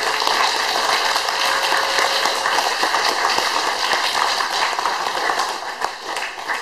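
A harmonium plays a steady drone of chords.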